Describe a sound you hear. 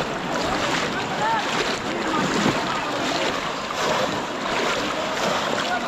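A crowd of men and children shout and chatter outdoors at a distance.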